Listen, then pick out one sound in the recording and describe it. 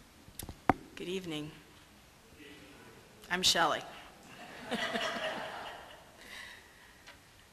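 An elderly woman speaks cheerfully into a microphone.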